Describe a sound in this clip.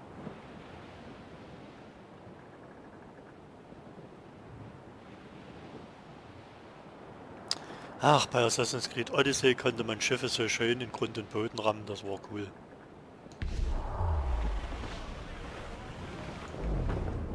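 Ocean waves roll and wash steadily.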